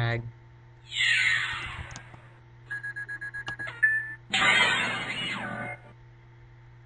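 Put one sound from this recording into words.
Game sound effects chime and whoosh as cards are played.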